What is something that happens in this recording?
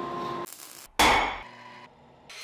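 A hammer strikes hot metal on an anvil with a ringing clang.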